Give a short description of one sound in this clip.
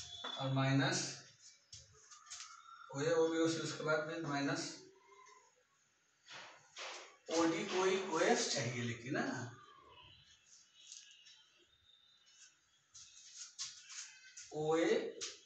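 A man speaks clearly and steadily, explaining, close by.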